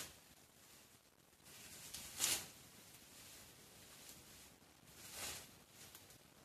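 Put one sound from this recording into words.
Dry grass rustles as a hand brushes through it.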